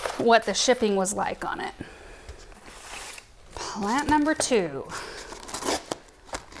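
Cardboard rustles and scrapes.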